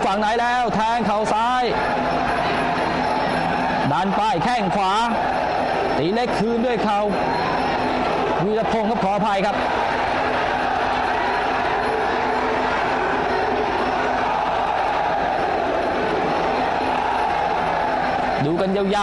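A crowd murmurs and cheers steadily around the ring.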